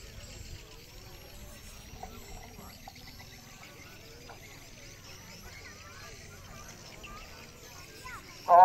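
A man speaks calmly through a microphone and loudspeaker, heard from a distance outdoors.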